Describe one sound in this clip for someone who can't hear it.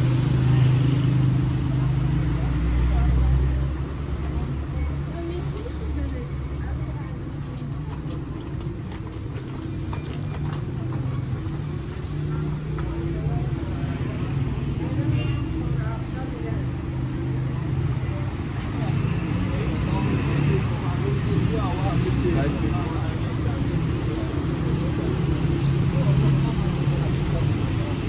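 Footsteps tap steadily on a paved sidewalk.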